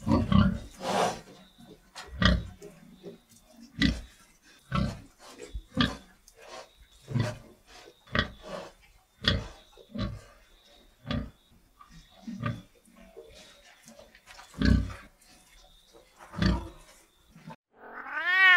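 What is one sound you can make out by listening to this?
Pigs grunt and squeal in short bursts.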